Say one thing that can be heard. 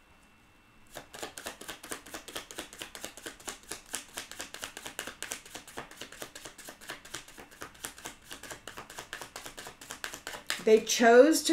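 Cards are shuffled with a rapid, soft riffling.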